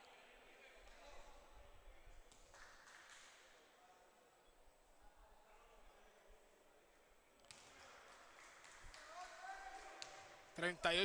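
Spectators murmur and chatter in a large echoing gym.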